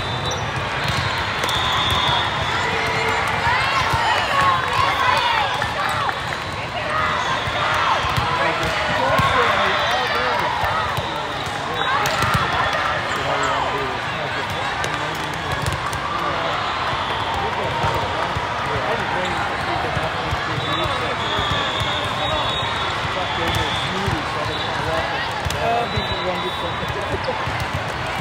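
Many voices chatter and shout across a large echoing hall.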